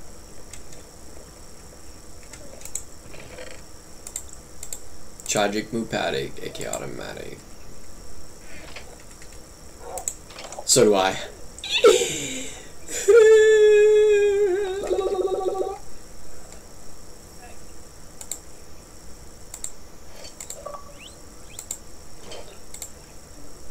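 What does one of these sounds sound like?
Keys tap on a keyboard.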